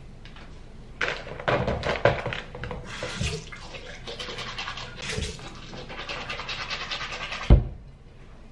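A toothbrush scrubs teeth briskly.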